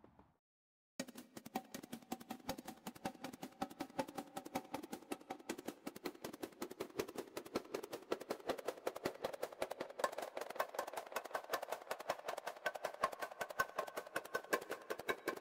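A synthesizer plays a fast ticking rhythm with soft, airy tones.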